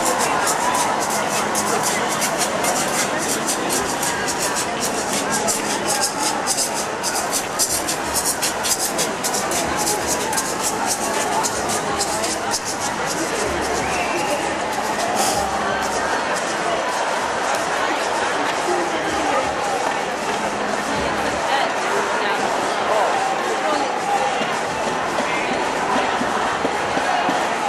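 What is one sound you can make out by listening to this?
A large crowd of protesters chants and cheers loudly outdoors.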